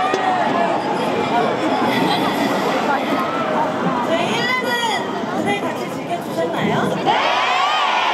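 A young woman speaks through a microphone over loudspeakers.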